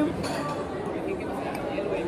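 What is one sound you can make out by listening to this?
A knife scrapes against a plate.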